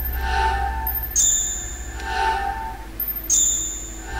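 Short electronic menu beeps chime.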